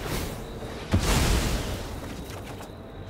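A magical whooshing burst of a game effect sounds.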